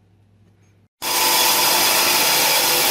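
An electric motor runs with a loud, steady whirr.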